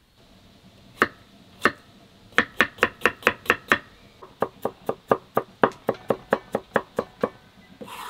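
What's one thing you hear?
A knife chops rapidly on a wooden board.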